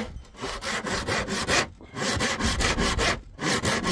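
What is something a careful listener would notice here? A hammer knocks nails into wood.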